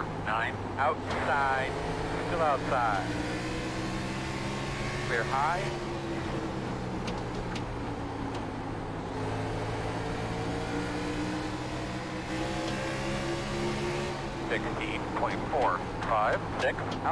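A race car engine drones steadily, rising and falling in pitch with gear changes.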